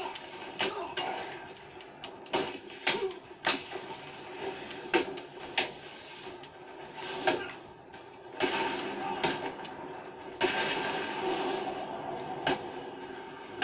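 Punches and kicks thud and smack in quick bursts from a video game through a television speaker.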